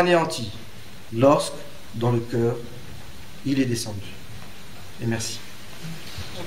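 A man speaks calmly and haltingly, close by.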